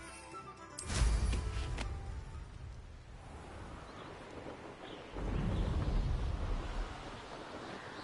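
A loud whoosh bursts out as a rider takes off into the air.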